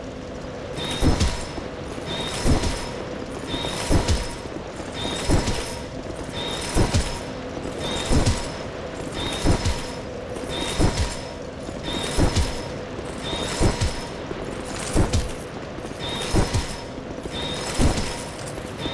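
A magic spell is cast again and again, each with a sharp thudding burst and a ringing chime.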